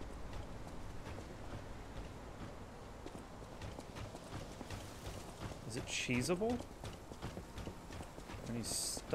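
Footsteps crunch over dirt and gravel.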